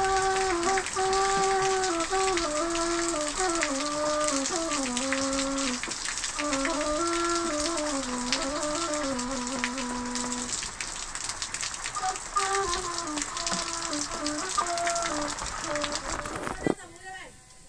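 A wooden flute plays a slow, wavering tune close by.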